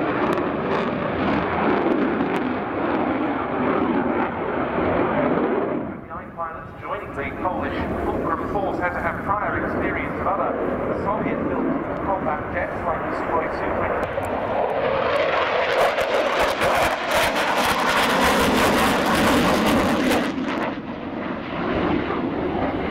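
A jet engine roars loudly overhead, rising and falling as the jet passes.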